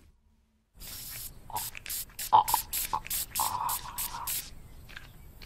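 An elderly man puffs an inhaler spray in quick bursts.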